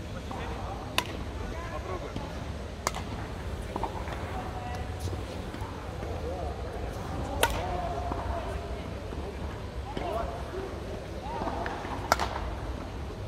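Badminton rackets hit a shuttlecock with sharp pops.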